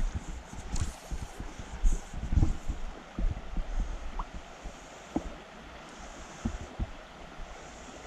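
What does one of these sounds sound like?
Wind blows outdoors, rumbling and buffeting.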